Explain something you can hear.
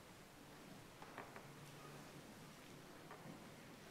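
A piano plays softly in a large hall.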